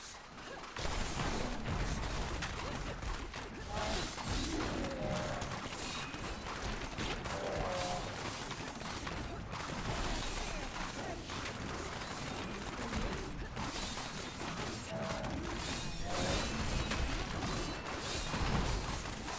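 Magic spells crackle and boom in rapid, constant bursts of battle.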